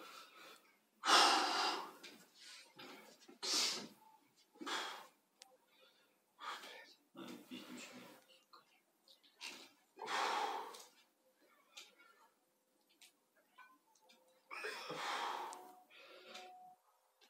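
A man exhales hard while lifting a weight.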